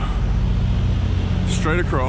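A truck engine idles nearby with a low rumble.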